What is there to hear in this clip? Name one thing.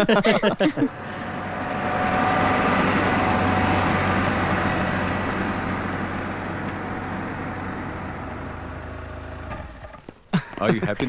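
A car engine hums as the car drives slowly away.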